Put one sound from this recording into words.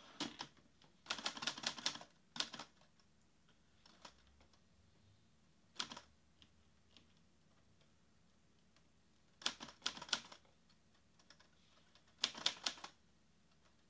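Fingers type on a laptop keyboard in quick bursts of clicks.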